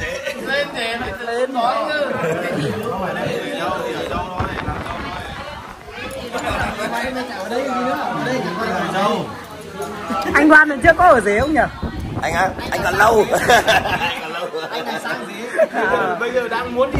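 Several men talk and chat casually close by.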